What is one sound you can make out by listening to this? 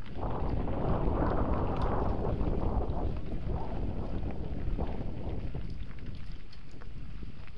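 Small stones click and rattle under bicycle wheels.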